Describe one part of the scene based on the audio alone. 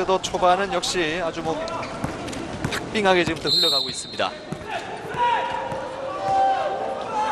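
A crowd cheers and chants in a large echoing arena.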